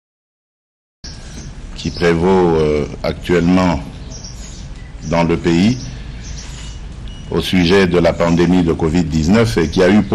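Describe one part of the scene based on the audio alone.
A man speaks calmly and formally into a microphone.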